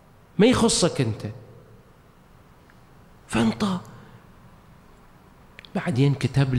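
A middle-aged man speaks slowly and solemnly into a microphone, in short phrases with pauses.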